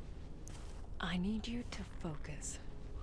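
An elderly man speaks calmly and gently.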